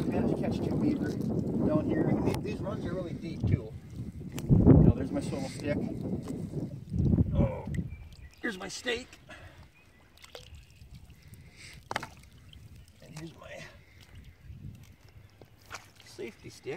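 Water splashes and sloshes around a man wading.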